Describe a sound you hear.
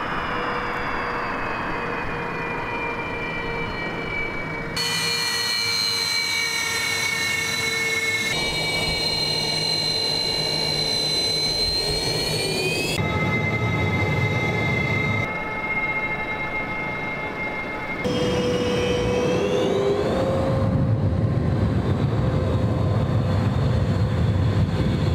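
A jet engine whines loudly with a high, steady scream.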